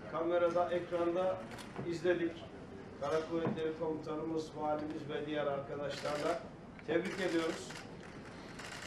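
A middle-aged man speaks into a two-way radio, close by.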